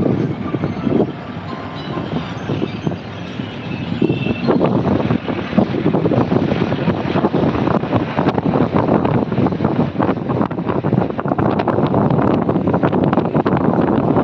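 Wind rushes and buffets past from a moving vehicle, growing louder.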